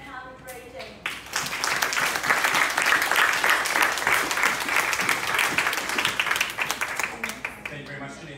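An audience claps and applauds loudly.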